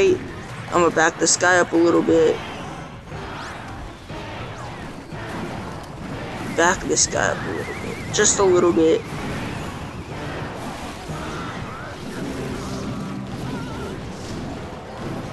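Cartoonish battle effects clash and pop in a game.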